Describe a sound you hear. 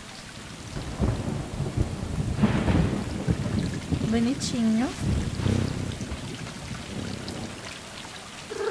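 A young woman talks animatedly into a microphone.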